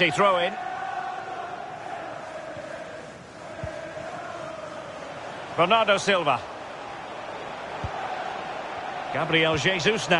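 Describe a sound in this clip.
A stadium crowd murmurs and roars steadily in the distance.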